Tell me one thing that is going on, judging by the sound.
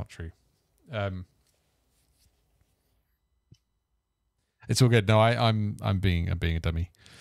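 A man speaks close into a microphone, with animation.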